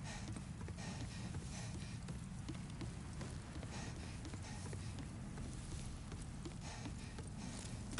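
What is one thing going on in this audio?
Footsteps thud steadily on wooden stairs.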